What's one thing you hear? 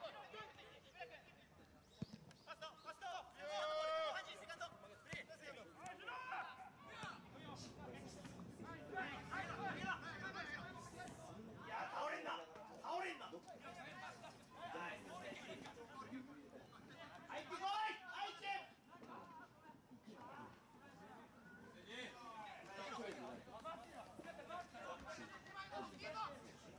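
Young male players shout and call to each other outdoors across an open field.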